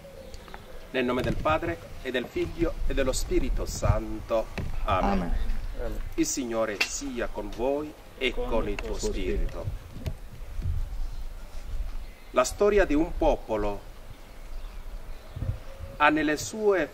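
A man reads aloud in a calm, steady voice, close by and outdoors.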